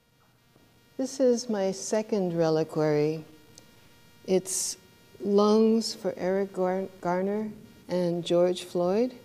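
A middle-aged woman speaks calmly and clearly into a microphone.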